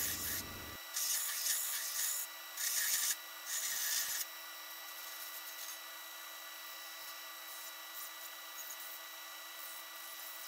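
A belt grinder motor hums steadily.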